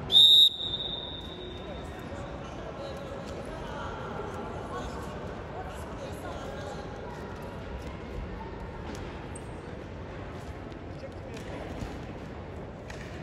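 Wrestlers' feet shuffle and thud on a mat.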